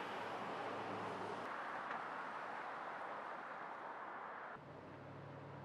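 Traffic rumbles past on a nearby road.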